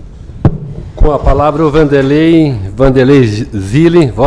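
A middle-aged man speaks calmly into a microphone over a loudspeaker.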